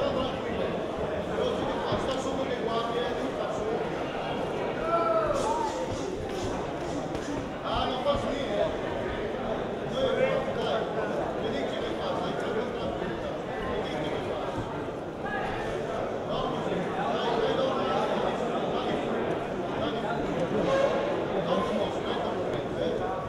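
A crowd of spectators shouts and cheers throughout.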